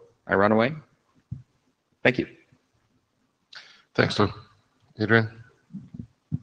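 A man speaks into a microphone in a large room, with pauses.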